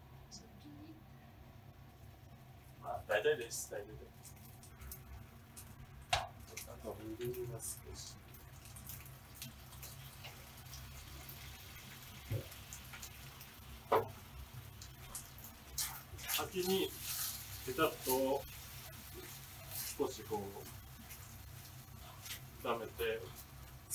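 A spatula scrapes and taps in a frying pan.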